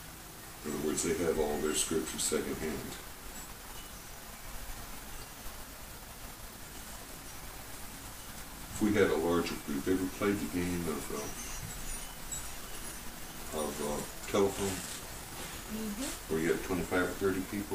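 An elderly man speaks calmly and warmly, close by, with pauses.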